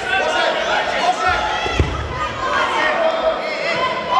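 A judoka is thrown and lands with a thud on a judo mat.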